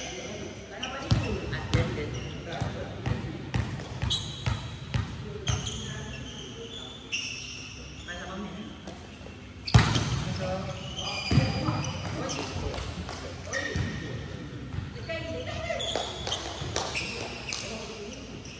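Young men call out to each other across a court.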